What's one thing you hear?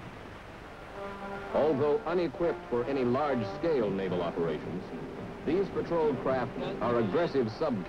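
A man speaks into a microphone, heard over a radio.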